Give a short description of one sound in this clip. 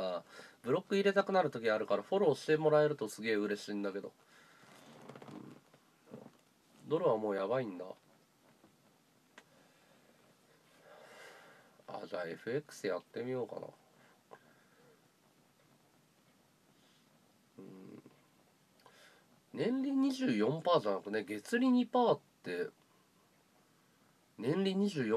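A man speaks calmly and close by, in short bursts with pauses.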